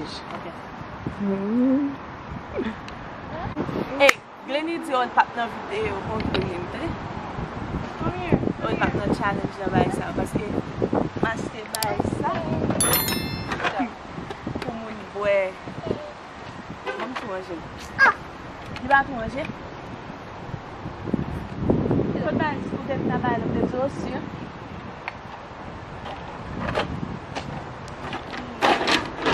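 A young woman talks with animation close by, outdoors.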